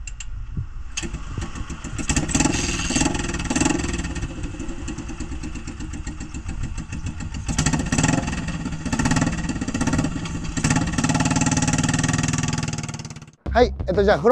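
A motorcycle engine starts and idles with a loud, rumbling putter.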